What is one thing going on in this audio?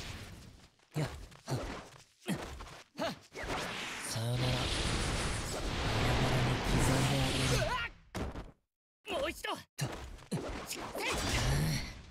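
Sharp blade slashes and impacts crack in quick bursts.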